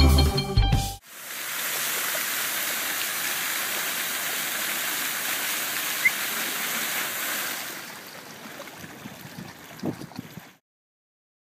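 A fountain splashes and gushes steadily.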